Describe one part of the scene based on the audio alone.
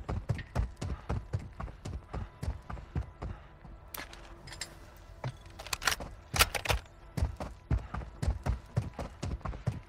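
Footsteps thud quickly and steadily as someone runs over the ground.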